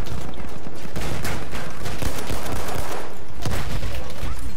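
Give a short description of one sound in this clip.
A rifle fires loud shots that boom and echo.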